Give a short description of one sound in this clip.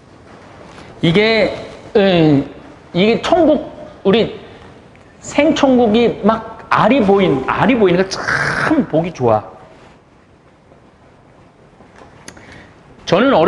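A middle-aged man talks with animation, close by.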